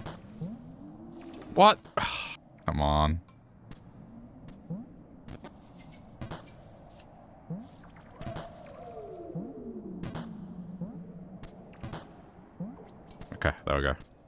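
Short chirping game sound effects blip as a small creature hops between ledges.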